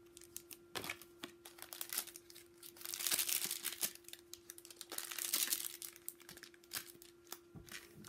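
Foil packets crinkle and rustle in hands.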